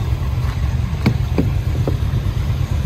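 A car door handle clicks.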